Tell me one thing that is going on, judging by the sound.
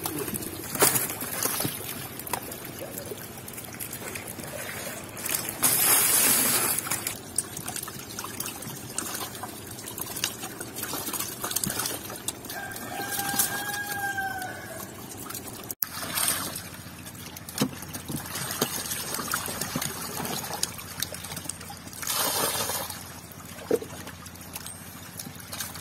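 Catfish squirm and slap wetly in a plastic crate with water.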